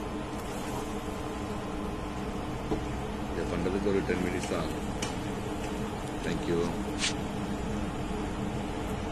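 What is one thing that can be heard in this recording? A wooden spatula scrapes and knocks against a pan while stirring a thick mixture.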